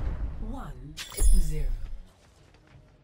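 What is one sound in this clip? A sharp electronic whoosh and thud ring out as a score changes.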